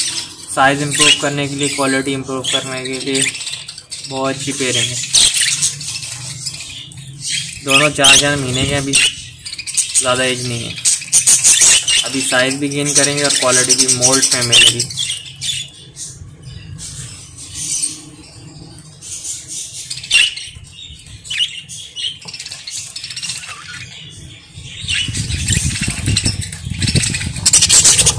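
Budgies chirp and chatter close by.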